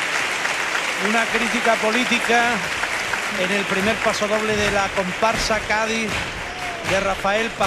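A chorus of men and women sings loudly.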